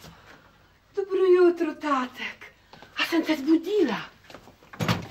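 A woman exclaims loudly and cheerfully nearby.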